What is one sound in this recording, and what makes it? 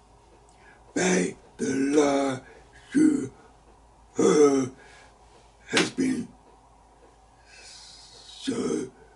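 An elderly man speaks emphatically and close to a microphone, in short bursts.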